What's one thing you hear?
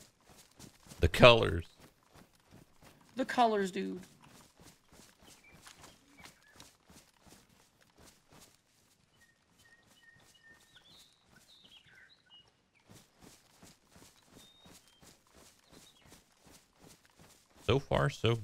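A young man speaks in short bursts into a close microphone.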